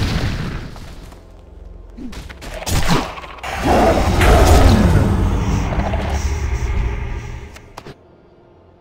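Magic spells blast and crackle loudly in a fight.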